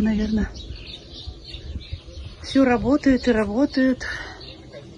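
A young child calls out loudly in a high, sing-song voice nearby.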